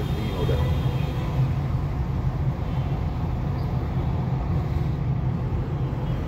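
A motorcycle engine buzzes close by.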